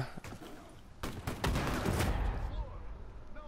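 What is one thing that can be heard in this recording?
A loud explosion booms and roars.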